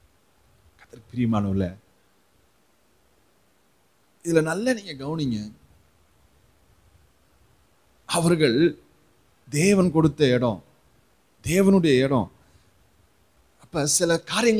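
A man speaks slowly and calmly into a microphone, in short phrases with pauses.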